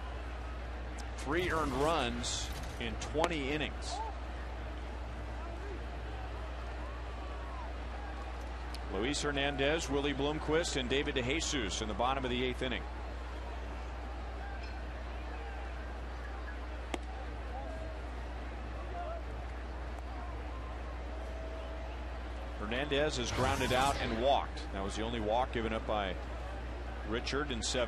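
A crowd murmurs in a large outdoor stadium.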